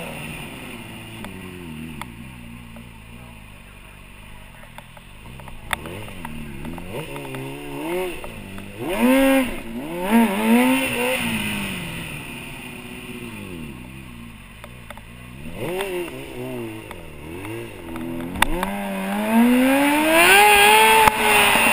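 A motorcycle engine revs up and down in bursts, rising loudly at the end.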